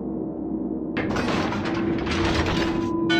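Water rushes and splashes against a ship's hull.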